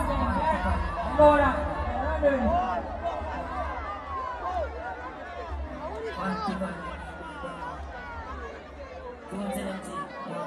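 Loud music with deep bass booms through loudspeakers.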